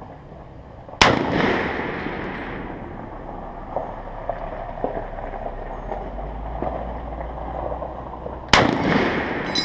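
A rifle fires loud single shots that echo outdoors.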